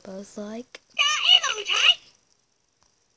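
An electronic toy chatters in a high, squeaky voice.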